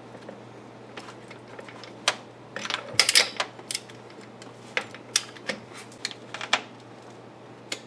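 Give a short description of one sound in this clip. Metal tools clink and knock against engine parts.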